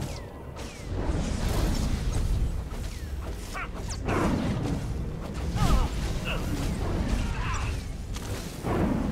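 A lightsaber hums and swooshes in combat.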